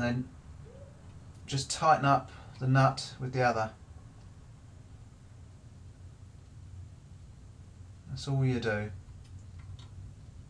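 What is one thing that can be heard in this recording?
A metal wrench clicks as it turns a nut on a bolt.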